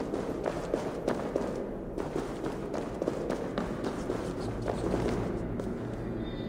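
Footsteps crunch on stone in a cave.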